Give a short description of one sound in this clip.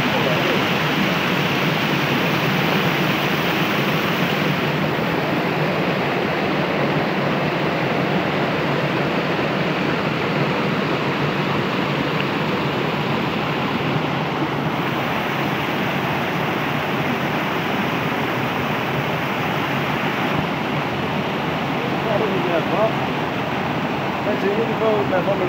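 Water rushes and splashes steadily over rocks close by.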